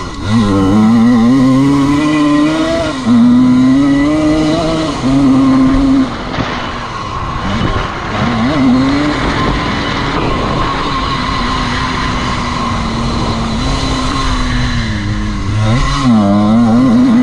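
Tyres crunch and spray over loose dirt.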